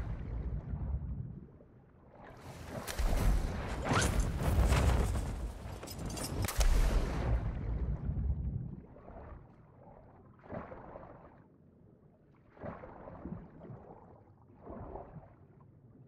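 Water splashes and churns around a swimmer in bursts.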